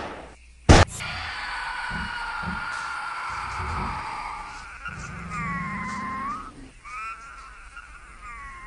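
A giant creature shrieks and chitters.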